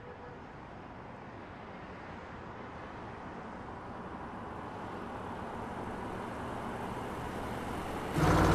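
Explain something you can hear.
A car engine hums steadily as a car drives along a winding road, slowly growing louder.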